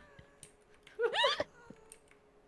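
A young woman laughs into a close microphone.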